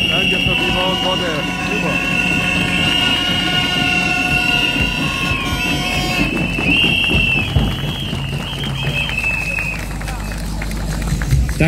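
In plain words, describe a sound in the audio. A crowd claps along in rhythm.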